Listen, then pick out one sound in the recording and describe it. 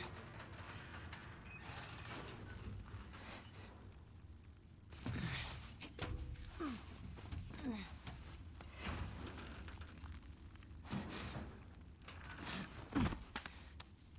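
Clothing and gear rustle and scrape as a person squeezes through a narrow gap.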